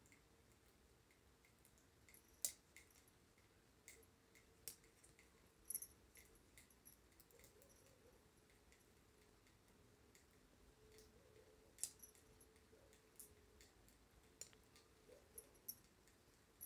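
Metal knitting needles click and tap softly against each other.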